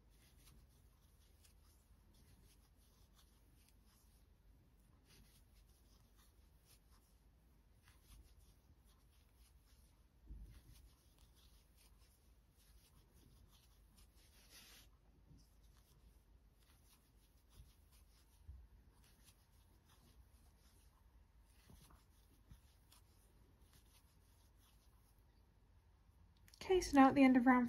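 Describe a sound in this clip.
A crochet hook and yarn rustle and tick softly close by.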